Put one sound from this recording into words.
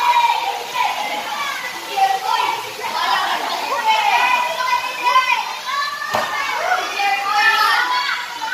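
Water splashes as children thrash about in a pool.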